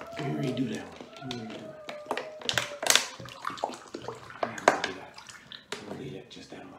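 A plastic bottle crinkles and clicks in a hand.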